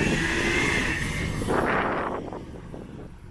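Water splashes hard against a truck as it drives through.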